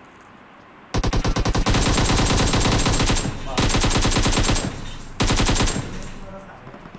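An automatic rifle fires rapid, loud bursts close by.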